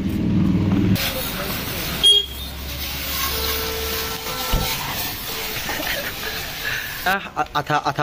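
A pressure washer hisses steadily as it sprays water onto a motorcycle.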